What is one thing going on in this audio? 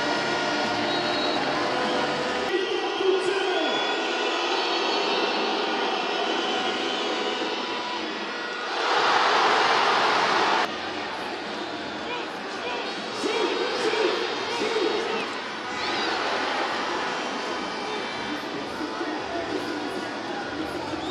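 A large crowd cheers and chants throughout in a big echoing arena.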